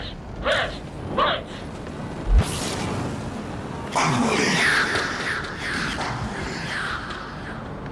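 Laser blasts crackle and boom.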